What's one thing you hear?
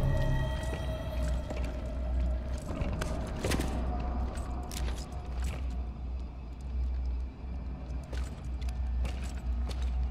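Heavy footsteps thud on a hard floor.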